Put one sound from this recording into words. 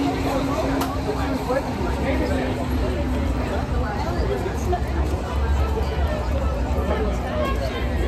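A crowd of people chatter outdoors at night.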